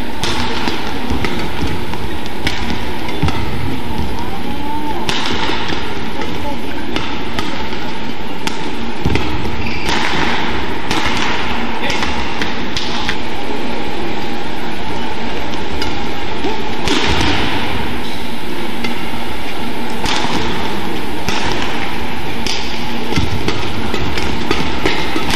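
Badminton rackets strike a shuttlecock back and forth.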